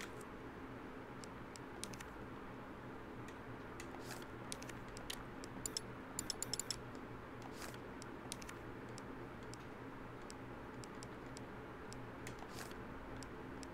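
Short electronic menu clicks tick now and then.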